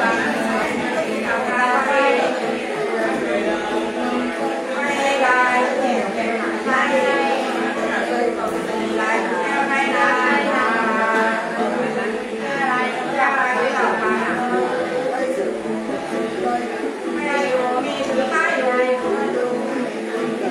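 An elderly woman sings in a wavering, chanting voice close by.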